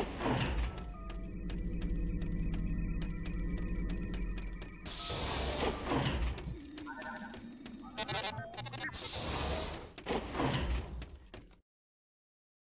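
Heavy metallic robot footsteps clank at a run.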